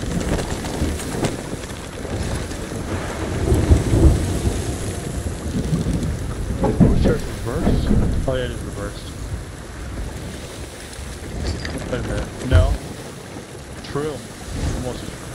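Strong wind roars.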